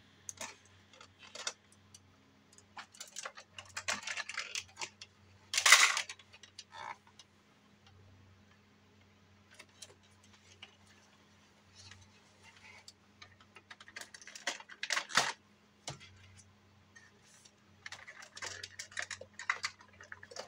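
Plastic toy parts click and rattle as hands handle them.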